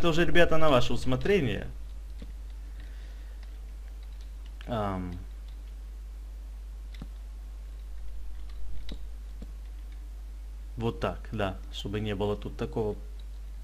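Soft wooden knocks sound as blocks are placed and broken.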